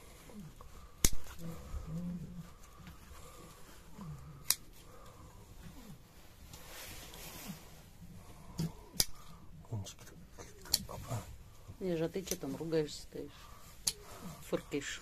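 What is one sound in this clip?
Hoof shears snip sharply at a goat's hoof.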